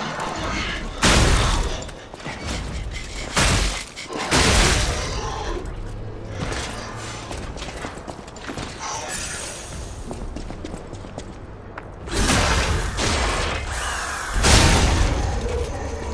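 Metal weapons clash with loud bursts of sparks.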